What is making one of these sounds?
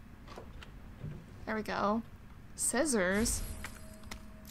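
A wooden drawer slides open with a squeak.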